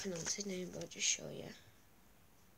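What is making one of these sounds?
A young boy speaks close to a microphone.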